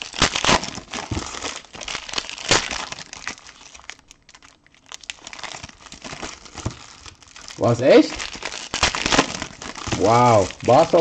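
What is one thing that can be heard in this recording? Plastic wrappers crinkle and rustle close by.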